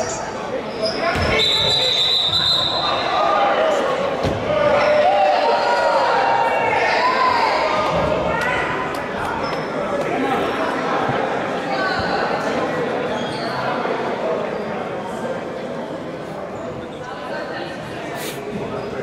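A crowd of spectators chatters and shouts in a large echoing gym.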